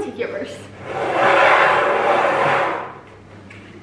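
A plastic bowl slides across a wooden table.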